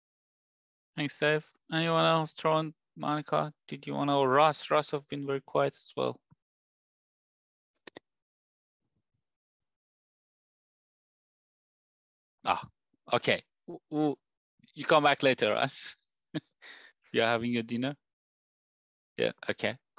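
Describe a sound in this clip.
A middle-aged man talks calmly over an online call.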